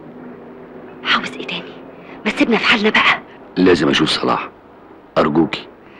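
A woman talks loudly and agitatedly nearby.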